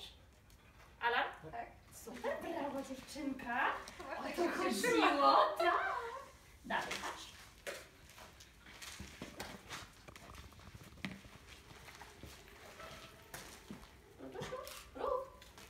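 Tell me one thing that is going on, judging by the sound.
A woman talks to a dog in a lively, coaxing voice nearby.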